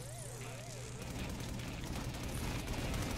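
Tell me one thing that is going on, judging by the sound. A burst of energy roars and crackles.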